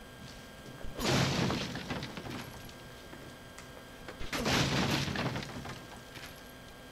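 A wooden crate smashes and splinters under blows.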